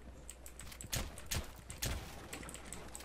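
Wooden boards splinter and crack apart.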